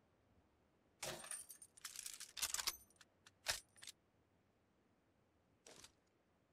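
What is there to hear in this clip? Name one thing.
A rifle fires in quick, sharp bursts.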